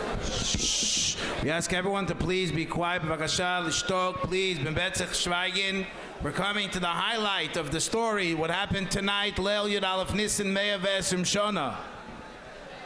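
A younger man sings into a microphone through a loudspeaker.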